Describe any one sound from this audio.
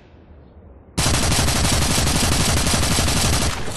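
A rifle fires in a long rapid burst.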